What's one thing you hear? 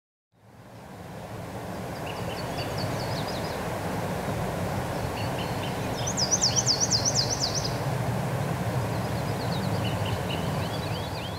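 Wind blows steadily through pine trees outdoors.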